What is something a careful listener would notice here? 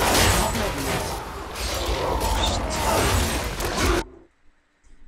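Magic blasts and explosions roar in a fierce fight.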